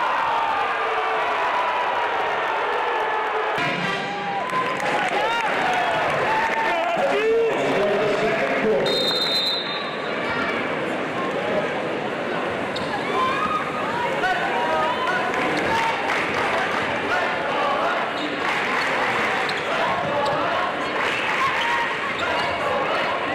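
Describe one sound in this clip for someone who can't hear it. A large crowd murmurs and cheers in an echoing arena.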